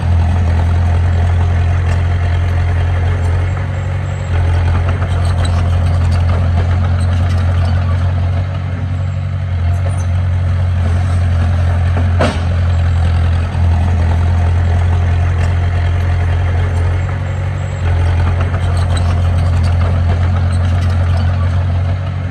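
A bulldozer engine rumbles steadily close by.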